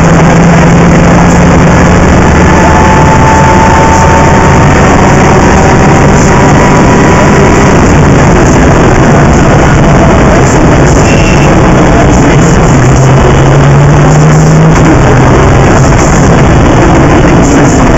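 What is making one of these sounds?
A car engine roars loudly and shifts up and down in pitch.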